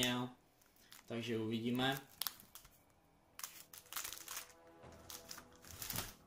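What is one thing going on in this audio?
Plastic wrapping crinkles as packs are handled.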